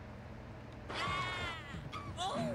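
Electronic game sound effects whoosh and chime.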